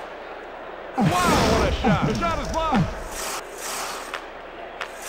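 An arena crowd cheers and roars.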